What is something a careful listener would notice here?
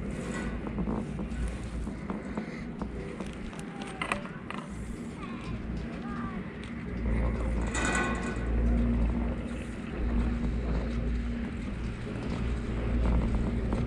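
A fixed-grip chairlift rumbles and rattles along its cable outdoors in wind.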